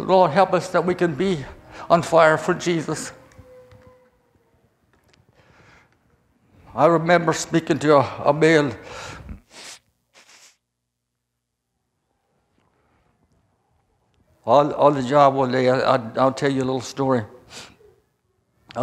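An elderly man speaks slowly and emotionally through a microphone, with long pauses.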